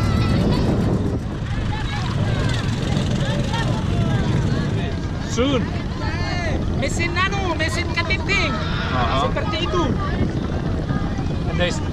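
A crowd of people chatter in the distance.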